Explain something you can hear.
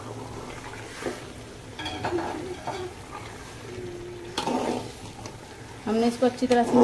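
A metal spoon scrapes and clatters against a metal pot.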